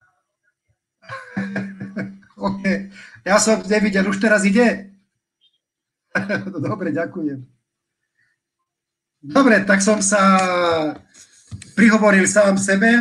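An older man talks on a phone with animation, close to a microphone.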